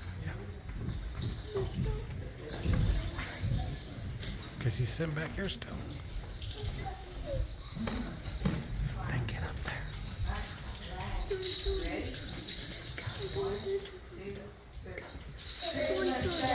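Young children speak in turn in a room with a slight echo.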